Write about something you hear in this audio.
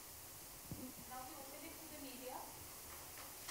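A woman speaks softly into a microphone.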